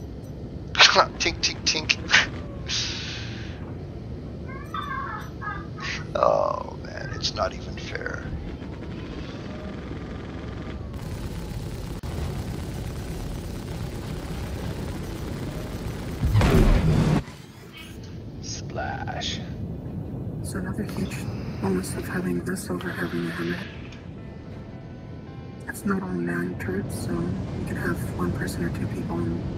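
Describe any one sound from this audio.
A spaceship's engines hum steadily with a low rumble.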